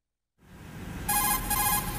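A radio call signal beeps rapidly.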